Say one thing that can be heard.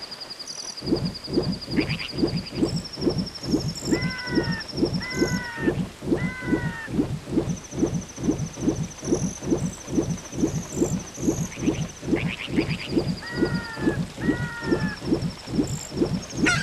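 Water splashes in a steady rhythm as a swimmer paddles.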